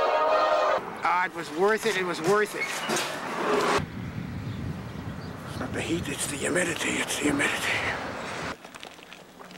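An elderly man talks close by with animation.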